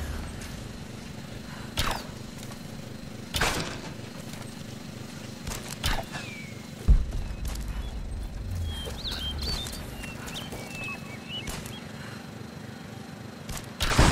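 A small drone whirs and buzzes in the air.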